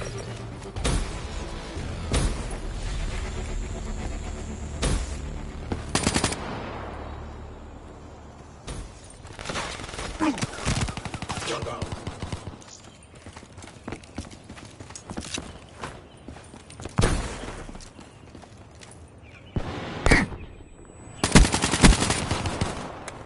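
Gunshots crack out sharply, one at a time.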